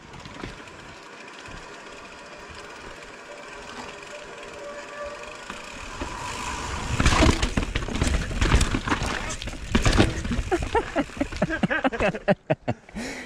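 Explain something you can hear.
Bicycle tyres roll and rattle over a rough, rocky dirt trail.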